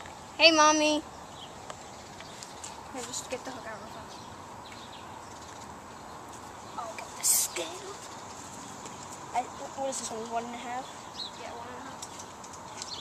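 A young boy talks close by, now and then excited.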